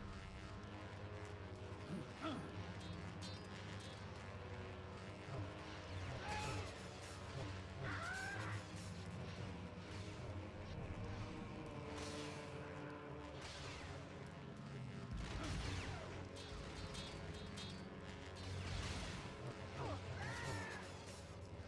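Lightsabers hum steadily.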